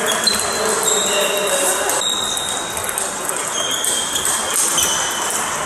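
Table tennis balls click back and forth on tables and paddles in a large echoing hall.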